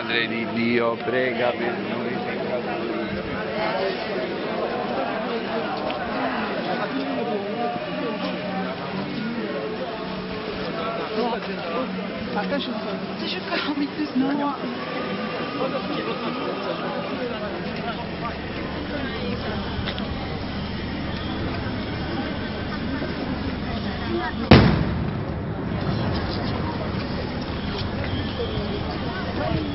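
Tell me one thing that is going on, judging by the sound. A crowd of men and women murmurs and talks nearby outdoors.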